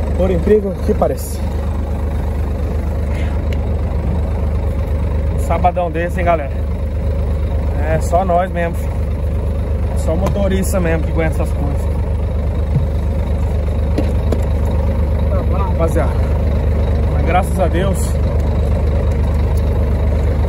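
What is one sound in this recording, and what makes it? A steady low engine rumble drones throughout.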